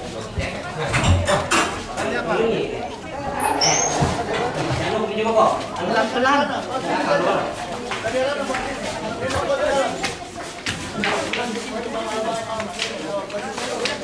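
Heavy wooden coffins thump and scrape as men carry them.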